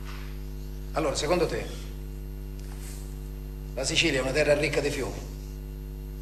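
A man speaks in short, calm phrases nearby.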